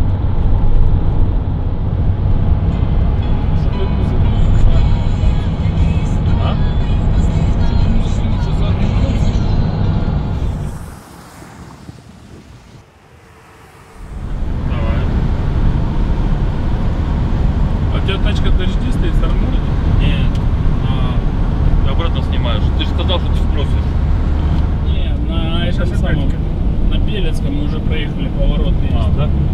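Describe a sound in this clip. A vehicle engine hums steadily, with road rumble heard from inside the cabin.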